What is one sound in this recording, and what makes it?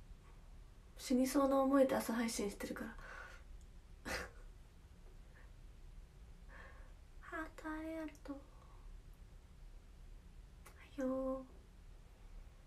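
A young woman speaks softly and cheerfully close to a microphone, in short bursts.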